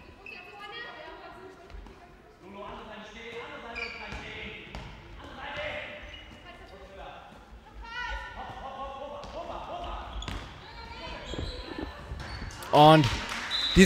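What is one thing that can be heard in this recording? A ball bounces on the floor.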